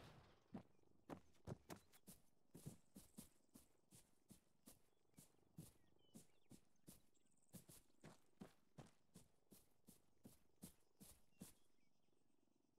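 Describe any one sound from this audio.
Footsteps crunch quickly through grass.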